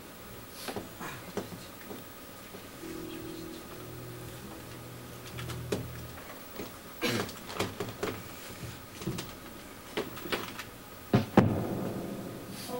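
Drums are struck loosely and unevenly.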